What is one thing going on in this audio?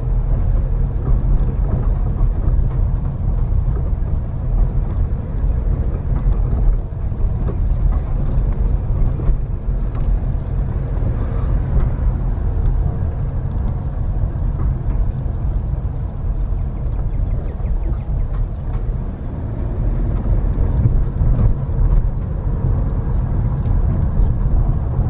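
A car engine rumbles low and steady while driving.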